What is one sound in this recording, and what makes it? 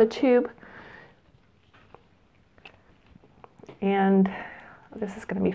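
A woman speaks calmly and close to a clip-on microphone.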